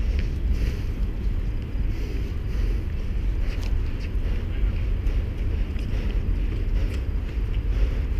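Wind buffets the microphone in a steady low rumble.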